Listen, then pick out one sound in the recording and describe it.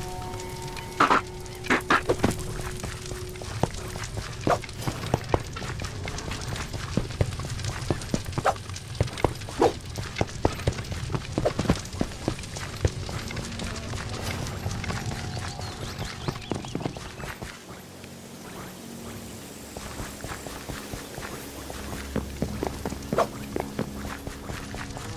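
Quick footsteps patter on stone and earth.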